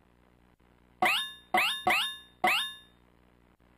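Short electronic game blips sound in quick succession.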